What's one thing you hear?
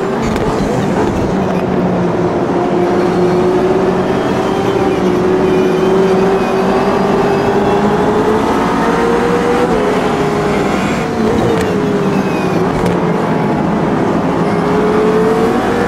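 A racing car engine roars steadily, rising and falling in pitch.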